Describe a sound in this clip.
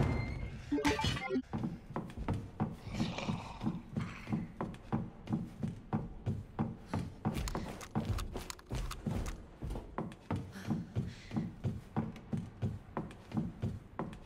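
Footsteps thud steadily on hard floors and wooden stairs.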